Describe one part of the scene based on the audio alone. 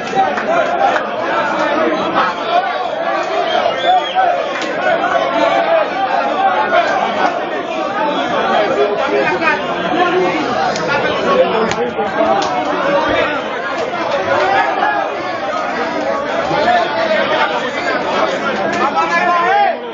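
A crowd of men talk and shout loudly over one another, close by.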